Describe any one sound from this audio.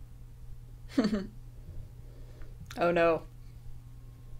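A young woman gives short amused exclamations.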